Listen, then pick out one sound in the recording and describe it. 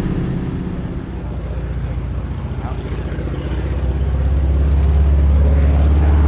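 A small propeller plane's engine rumbles as it taxis on the ground.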